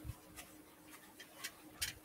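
Plastic wrap crinkles.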